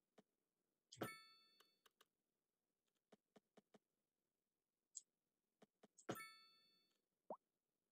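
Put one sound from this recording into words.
A short bright chime rings twice.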